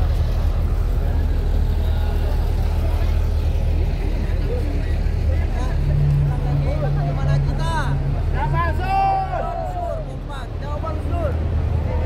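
A bus engine idles with a low rumble.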